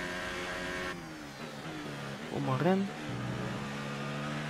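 A Formula One car's engine shifts down under braking.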